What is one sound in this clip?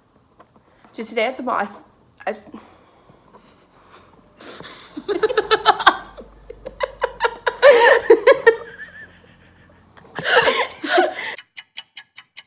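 Two young women laugh together nearby.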